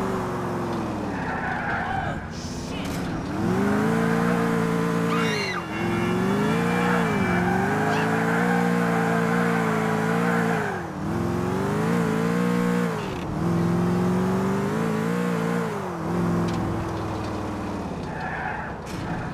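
Tyres screech as a car skids around corners.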